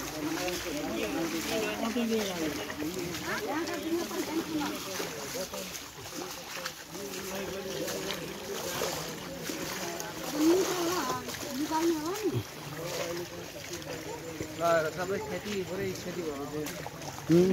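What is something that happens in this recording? Bare feet splash through shallow water.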